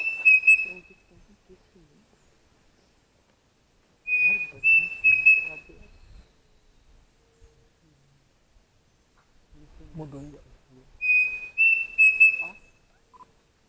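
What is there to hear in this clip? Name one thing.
A man talks quietly close by.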